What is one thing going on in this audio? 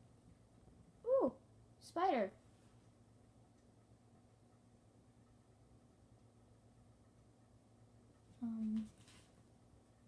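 A young girl speaks briefly in short bursts, close by.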